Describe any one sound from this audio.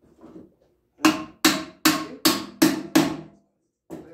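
A hand tool clicks sharply several times.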